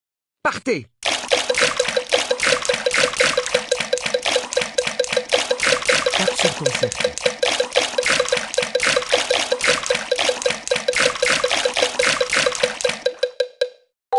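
Water splashes and sloshes steadily.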